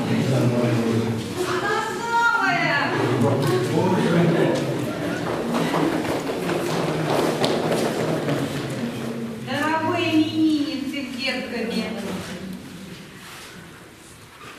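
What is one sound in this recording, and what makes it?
Dancers' shoes step and shuffle on a parquet floor.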